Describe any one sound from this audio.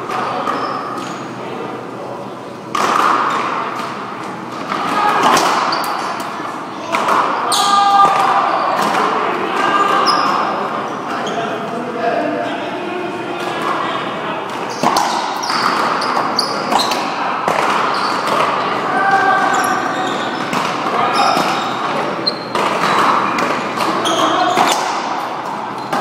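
Shoes squeak sharply on a court floor.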